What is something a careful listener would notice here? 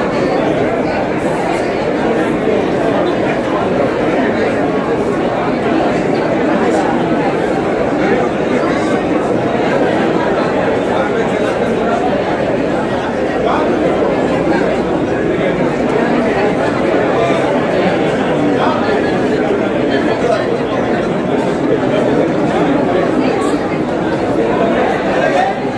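A middle-aged woman speaks calmly into microphones close by.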